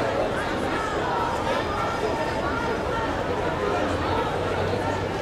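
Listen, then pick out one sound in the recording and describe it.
A crowd of marchers chatters and calls out outdoors.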